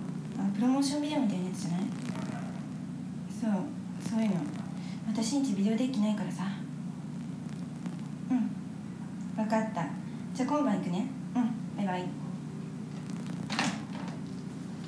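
A young girl talks close by in a small voice.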